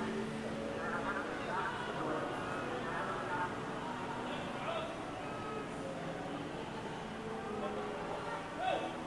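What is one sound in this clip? Men talk nearby in low voices.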